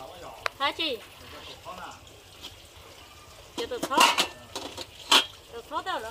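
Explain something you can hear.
Water from a hose splashes into a basin.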